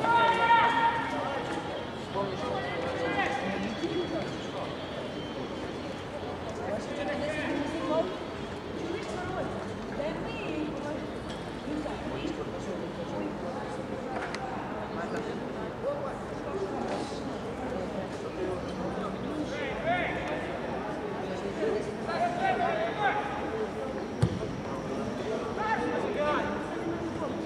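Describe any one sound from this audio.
Men shout to each other across an open field, heard from a distance.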